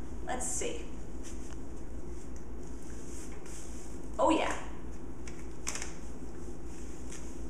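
Fabric rustles as a sock is pulled on.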